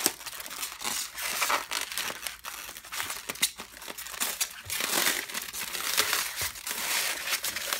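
Tape crackles as hands press and peel it.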